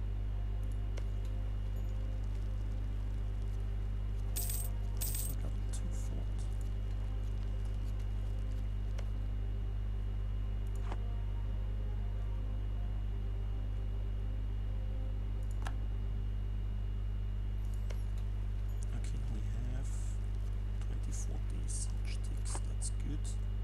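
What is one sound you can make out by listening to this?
Soft interface clicks sound now and then as menus open and close.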